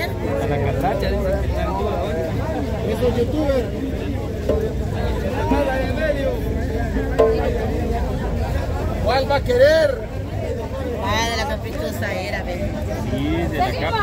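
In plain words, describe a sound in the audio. A crowd chatters and calls out nearby outdoors.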